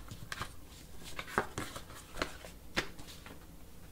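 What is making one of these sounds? Pieces of cardboard rustle and tap together as they are handled.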